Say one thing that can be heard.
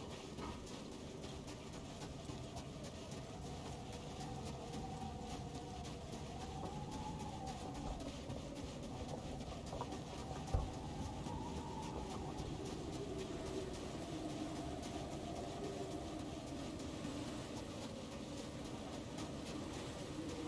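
Wind blows steadily outdoors, whipping up snow.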